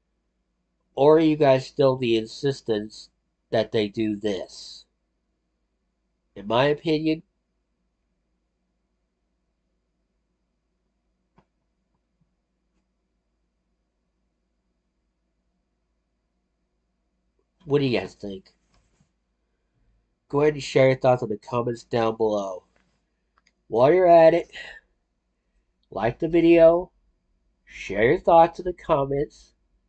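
A man speaks calmly and close to a microphone, in short bursts with long pauses.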